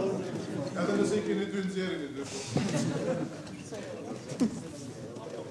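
A large crowd shouts and cheers in a big echoing hall.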